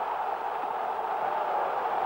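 A man shouts in celebration.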